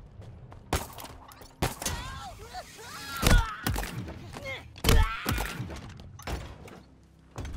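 Gunshots bang sharply.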